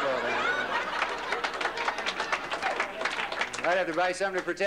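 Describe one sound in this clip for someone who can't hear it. An audience laughs and claps in a large room.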